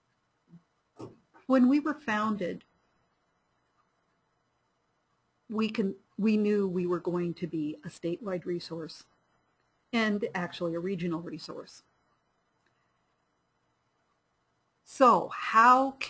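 A woman speaks calmly into a microphone, heard over an online call.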